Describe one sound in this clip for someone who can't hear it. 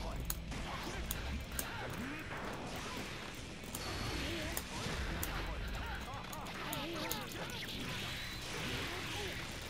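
Sharp video game hit sounds crack again and again.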